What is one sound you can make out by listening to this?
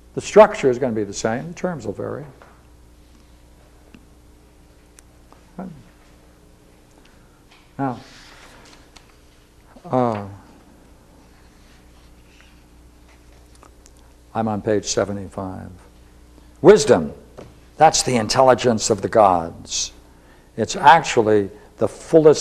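An elderly man speaks calmly and slowly, with long pauses, close by.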